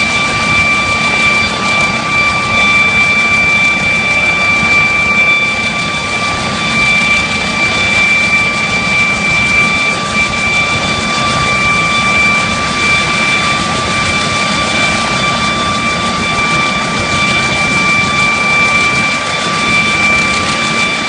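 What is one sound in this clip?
A helicopter's engine whines steadily close by.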